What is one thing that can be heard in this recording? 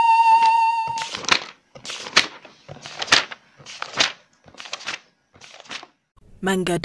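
Paper pages flip and rustle in quick succession.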